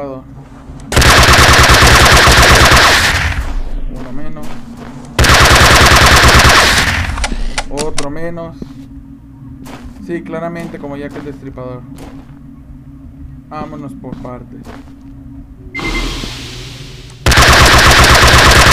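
A gun fires in loud rapid bursts.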